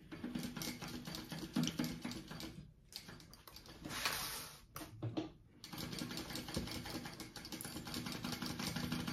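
A sewing machine whirs steadily as it stitches.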